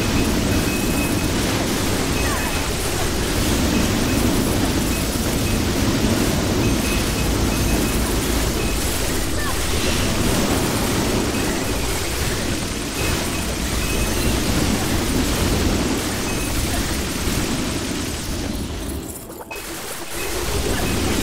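Rapid game spell effects crackle and burst without pause.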